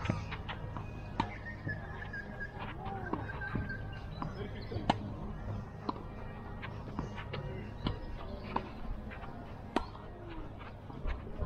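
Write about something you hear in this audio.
Shoes scuff and squeak on the court.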